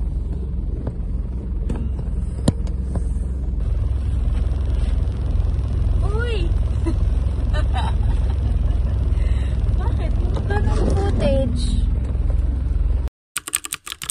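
A car engine rumbles low and steady inside a car.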